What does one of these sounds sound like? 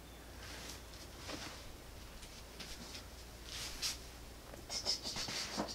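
Hands rub and press on fabric with soft rustling.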